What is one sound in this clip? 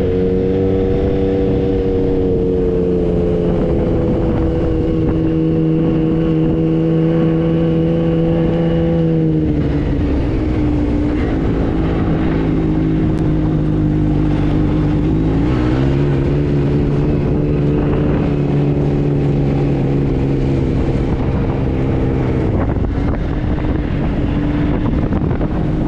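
A buggy engine drones steadily close by, its pitch shifting as it changes speed.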